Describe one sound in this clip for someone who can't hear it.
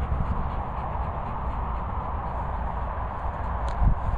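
A large dog pants with its mouth open.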